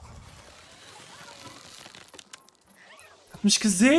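A bowstring creaks as a bow is drawn back.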